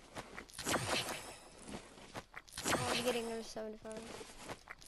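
A potion glugs and fizzes with a shimmering chime as it is drunk.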